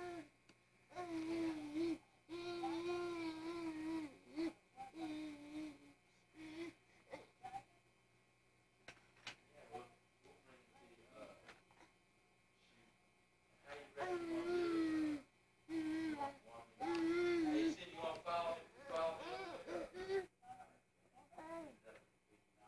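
A baby babbles and coos nearby.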